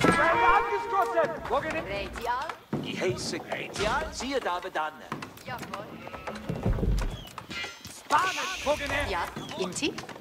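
Soldiers clash in a battle with scattered clanks and shots.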